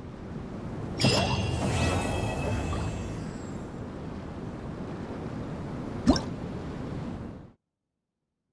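A bright chime rings out and slowly fades.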